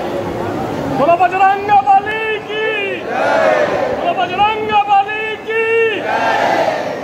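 A crowd of voices sings together in long, drawn-out notes.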